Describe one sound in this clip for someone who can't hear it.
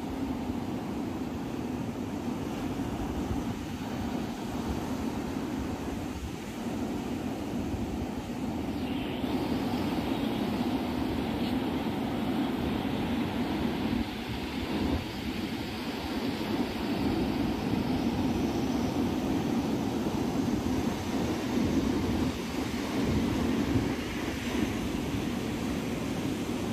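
Wind blows hard and rumbles.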